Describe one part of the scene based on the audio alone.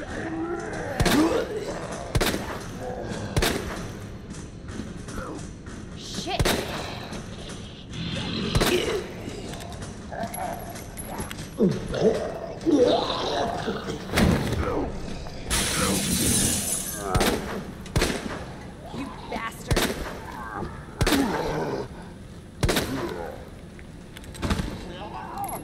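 Pistol shots ring out one at a time, with short echoing tails.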